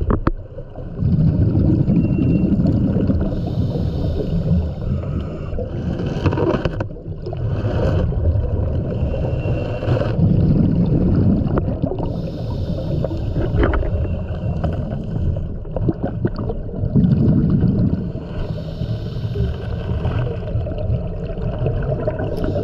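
A scuba diver breathes out through a regulator, bubbles rumbling underwater.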